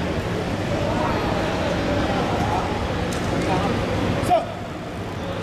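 A man calls out commands loudly in a large echoing hall.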